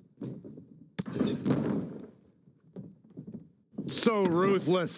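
Bodies thud heavily onto a wrestling ring mat.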